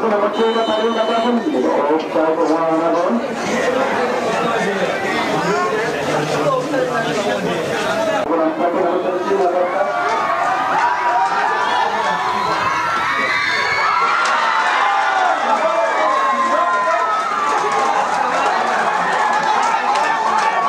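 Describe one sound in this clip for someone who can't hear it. A large outdoor crowd of spectators chatters and shouts.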